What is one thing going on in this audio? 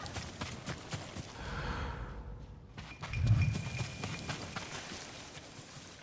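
Footsteps run quickly through rustling grass.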